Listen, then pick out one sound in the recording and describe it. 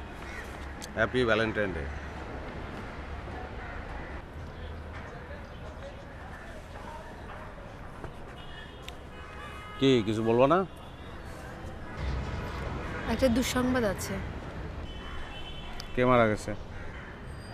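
A middle-aged man speaks in short, emotional bursts nearby.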